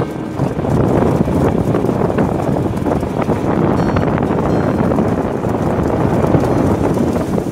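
An outboard motor drones loudly and steadily.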